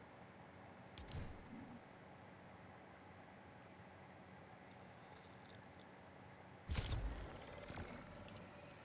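A game menu makes short clicking chimes as options are selected.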